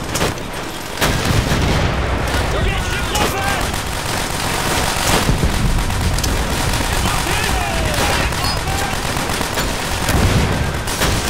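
Explosions rumble and boom in the distance.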